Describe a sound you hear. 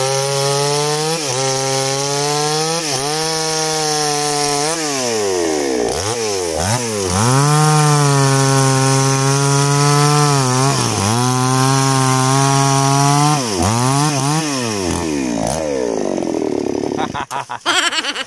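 A chainsaw engine roars and revs up and down while cutting wood.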